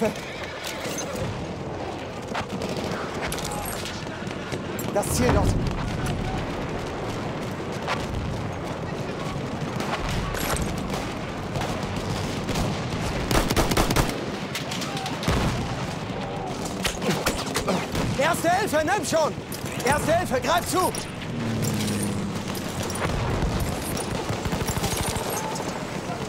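Gunfire crackles.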